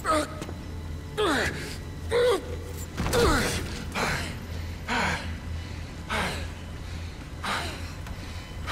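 A man exclaims excitedly into a microphone.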